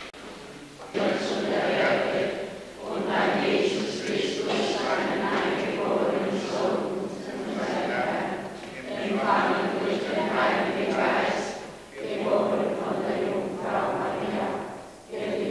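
A crowd of people sings together, echoing loudly.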